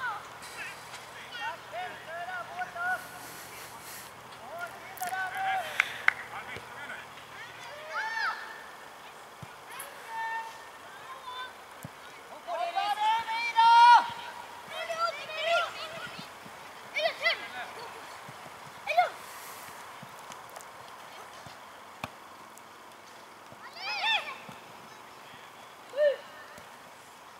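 Children shout and call out across an outdoor pitch.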